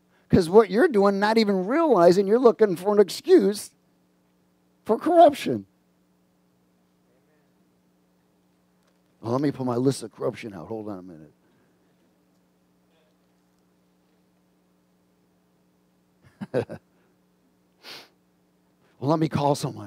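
A middle-aged man speaks with animation through a headset microphone, with pauses between phrases.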